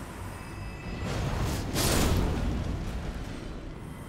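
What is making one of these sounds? A magical blast bursts with a deep roar.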